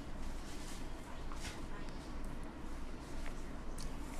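Liquid pours and trickles into a plastic tray.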